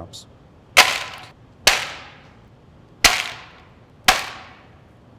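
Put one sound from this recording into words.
Hard candies clatter against a metal tray.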